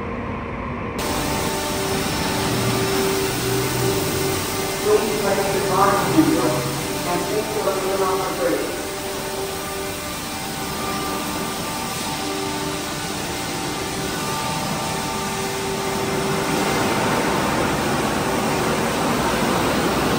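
Water sprays onto a car.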